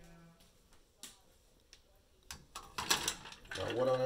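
Metal tongs clink against a metal can.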